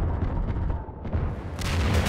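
Bullets splash into water.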